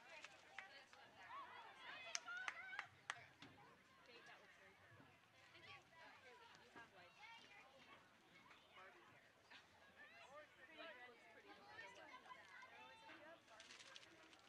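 Young women shout and call out to each other at a distance.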